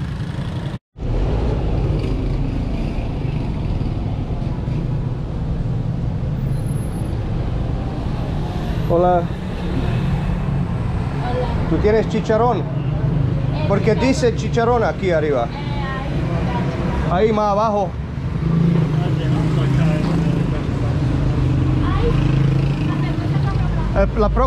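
Cars and motorbikes pass by on a street.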